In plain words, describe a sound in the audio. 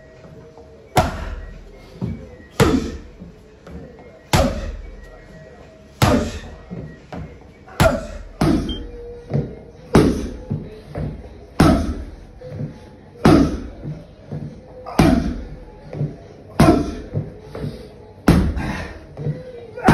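Boxing gloves thud hard into a padded body shield in a regular rhythm, with lighter punches in between.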